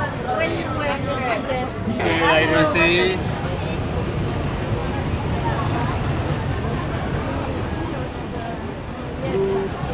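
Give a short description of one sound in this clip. A man talks excitedly outdoors.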